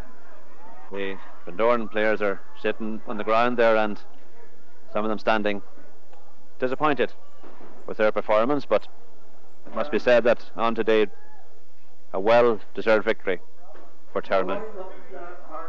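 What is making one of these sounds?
A man speaks loudly and clearly, close by, in short bursts.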